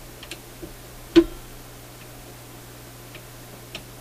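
A phonograph tone arm clicks as a hand moves it.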